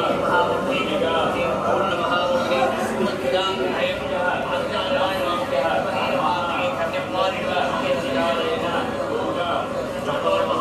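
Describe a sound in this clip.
Several men chant loudly together, close by.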